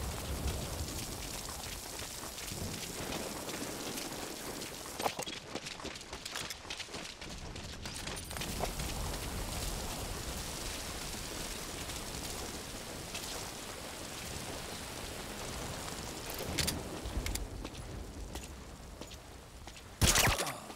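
Rain pours steadily outdoors.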